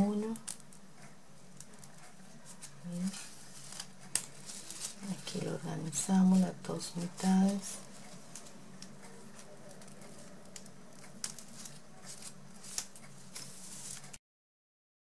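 Ribbon rustles and crinkles softly as fingers fold and pinch it.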